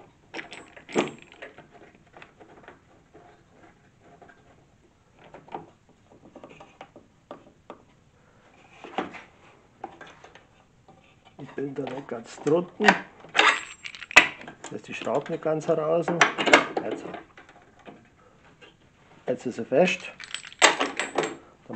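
Pieces of wood knock and clatter on a saw table.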